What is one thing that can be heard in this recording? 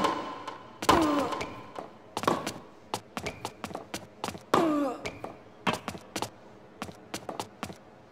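A tennis ball is struck hard with a racket, back and forth.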